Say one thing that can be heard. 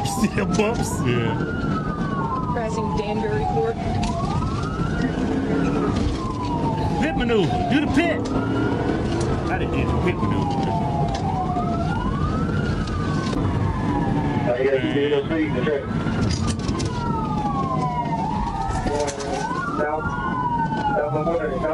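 A siren wails up and down steadily close by.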